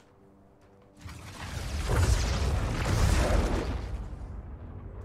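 Electricity crackles and roars in a loud burst.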